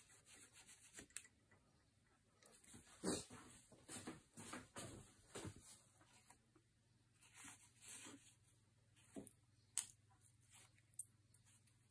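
Scissors snip sharply through cord.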